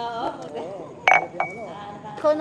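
A glass clinks on a table.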